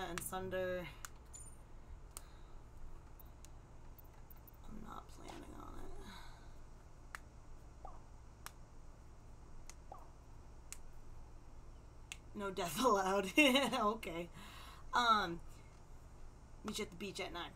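Short soft clicks sound now and then as chat messages pop up.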